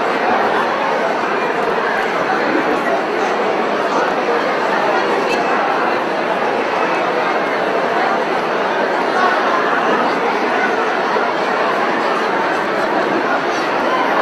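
A large crowd of men and women murmurs and chatters in an echoing hall.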